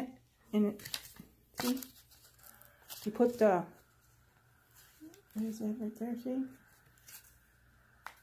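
Plastic parts click and rattle in a woman's hands.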